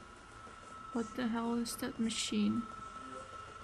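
A young woman speaks briefly and with animation, close to a microphone.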